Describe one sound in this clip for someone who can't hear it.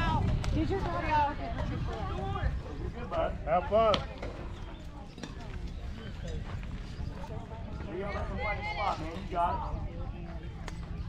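Children shout and cheer across an open outdoor field.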